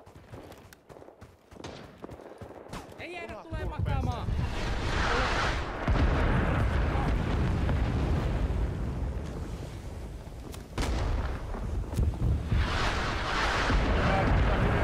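Footsteps crunch on snow and then thud on a wooden floor.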